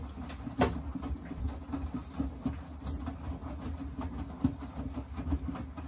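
Wet laundry thumps and sloshes inside a washing machine drum.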